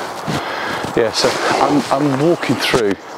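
An older man speaks calmly close by.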